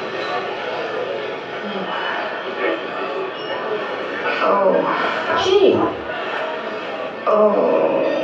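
A person speaks with animation, heard through a loudspeaker.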